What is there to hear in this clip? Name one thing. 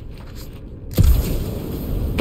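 Jet thrusters roar as a game character boosts upward.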